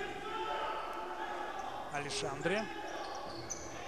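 Sports shoes squeak on a hard indoor floor.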